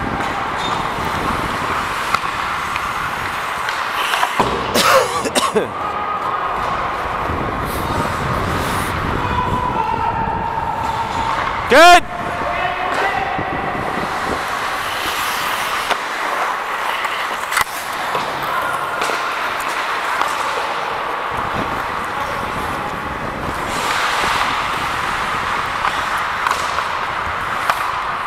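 Ice skates scrape and carve across the ice close by.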